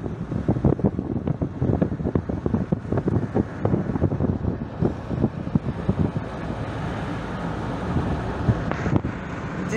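Wind buffets loudly against the open window of a moving car.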